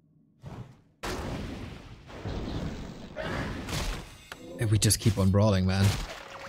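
Fantasy battle sound effects clash and crackle.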